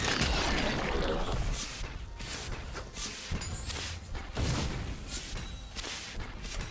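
Magic blasts and weapon blows clash in a busy fantasy battle.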